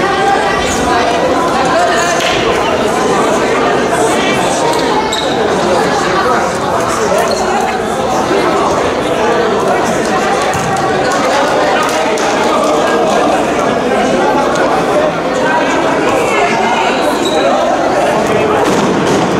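A crowd of people chatter and shout throughout a large echoing gym.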